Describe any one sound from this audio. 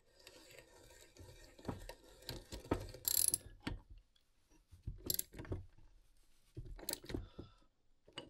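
A man talks calmly, close by.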